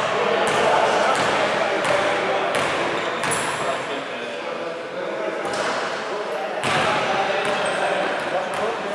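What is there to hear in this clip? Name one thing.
Men call out to each other across an echoing hall.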